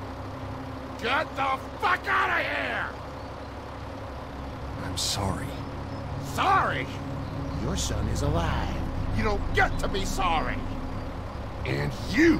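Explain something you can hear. An elderly man speaks in a strained, angry voice.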